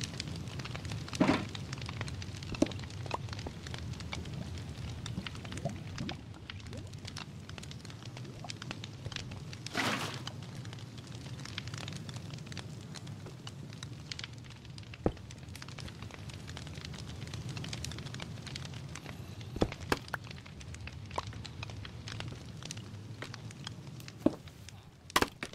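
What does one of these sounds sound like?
Lava bubbles and crackles steadily.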